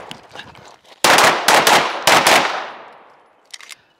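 A pistol fires a rapid string of shots, each echoing outdoors.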